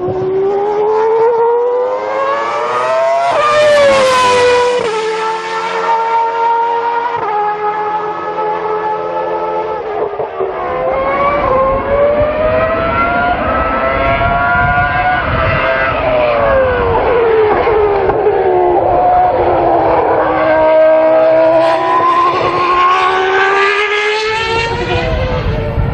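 Racing car engines scream and rise and fall in pitch as the cars speed past.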